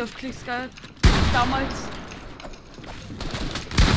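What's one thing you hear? A pickaxe strikes a wooden wall with sharp thuds.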